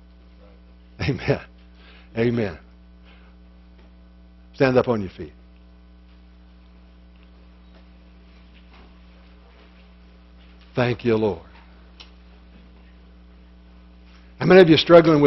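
An older man speaks in short bursts in a room with some echo.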